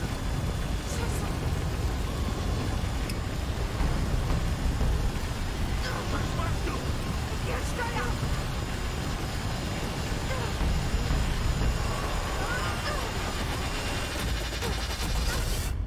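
A young woman cries out and speaks in distress.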